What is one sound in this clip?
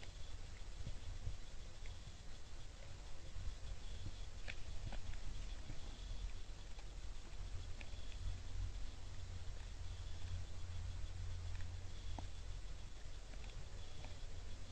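Deer crunch and nibble corn kernels nearby.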